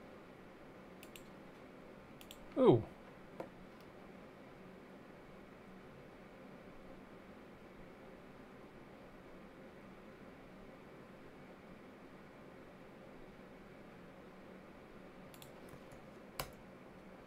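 Computer keys click softly.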